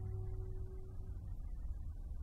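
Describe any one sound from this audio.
A horn holds a long, soft note.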